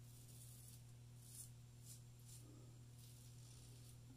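A razor scrapes over stubble in short strokes.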